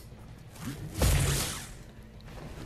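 A magical energy blast bursts with a loud whoosh.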